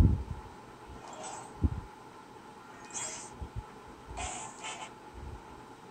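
A handheld game console plays short bright menu chimes.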